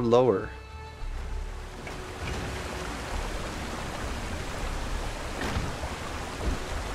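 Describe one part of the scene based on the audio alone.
Water splashes softly as a swimmer paddles.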